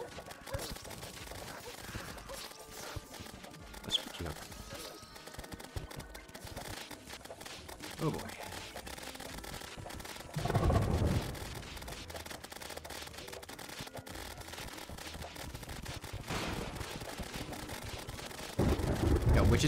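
Video game weapons fire rapidly with clicking zaps.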